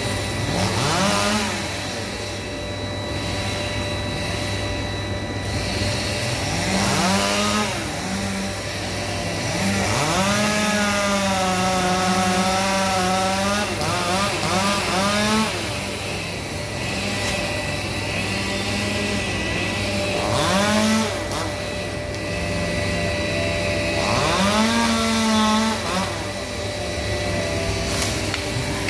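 A chainsaw high in a tree idles and revs up again and again.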